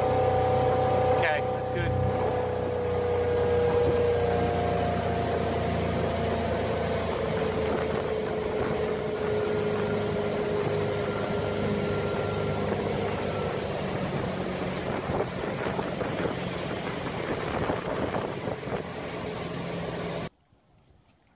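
Water rushes and churns in a boat's wake.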